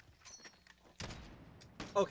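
A rifle shot cracks once.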